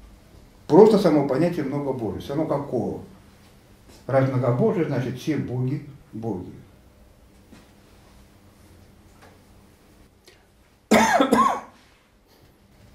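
An elderly man speaks with animation, pausing between phrases.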